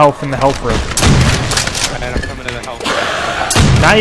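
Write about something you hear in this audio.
A shotgun fires loud single blasts.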